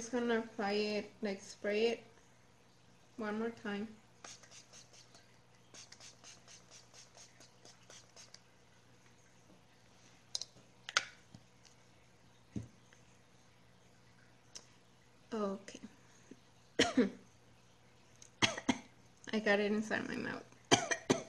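A young woman talks close to a microphone, casually and with pauses.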